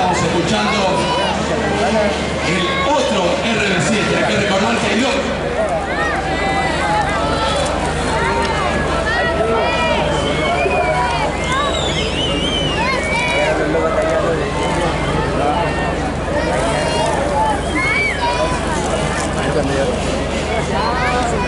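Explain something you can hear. A large outdoor crowd chatters and cheers loudly all around.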